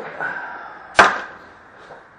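A plastic object is set down with a clack.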